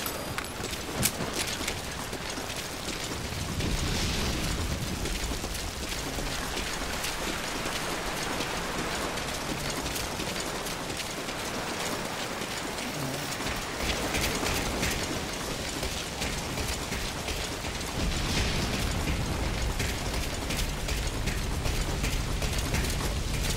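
Footsteps run quickly on wet ground.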